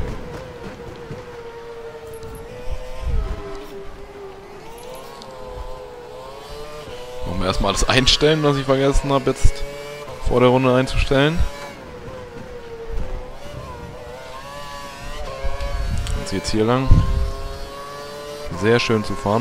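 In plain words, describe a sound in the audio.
A racing car engine whines loudly, rising and dropping in pitch as it shifts gears.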